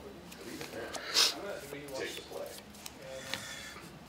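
A hand shuffles a deck of playing cards.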